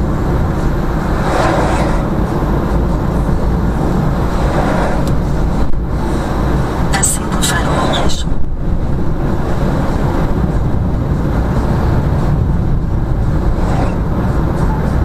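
A large truck roars past close by.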